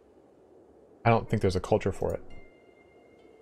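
A man speaks briefly with animation into a close microphone.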